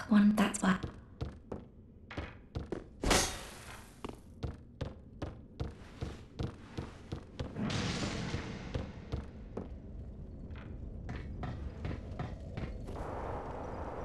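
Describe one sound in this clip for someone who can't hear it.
Heavy footsteps clank across a wooden floor.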